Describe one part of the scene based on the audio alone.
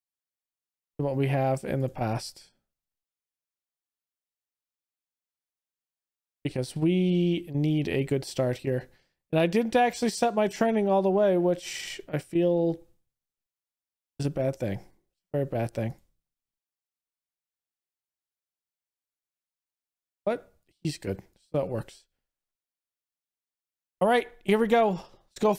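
A man talks calmly into a close microphone, in short bursts with pauses.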